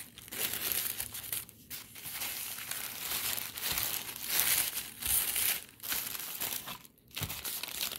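Tissue paper rustles and crinkles as it is handled.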